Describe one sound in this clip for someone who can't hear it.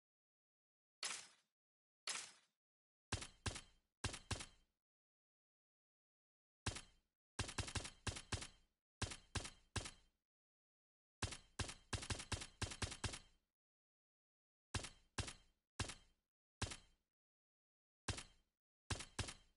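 Short, sharp menu clicks sound in quick bursts as a selection moves from one choice to the next.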